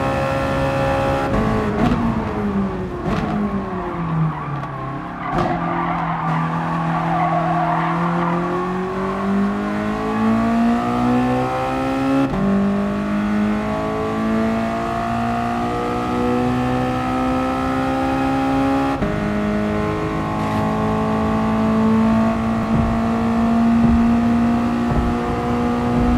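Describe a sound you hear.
A racing car engine roars, dropping in pitch as it slows, then climbing steadily through the gears.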